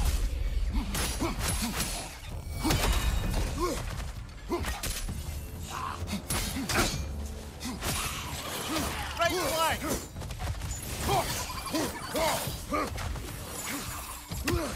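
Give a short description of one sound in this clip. Heavy weapon blows strike with sharp thuds and clangs.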